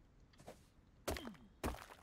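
A pickaxe strikes stone with sharp knocks.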